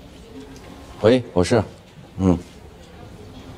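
A middle-aged man speaks briefly into a phone.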